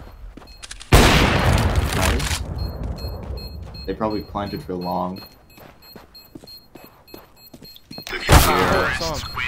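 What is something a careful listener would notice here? A sniper rifle fires with a loud, sharp crack.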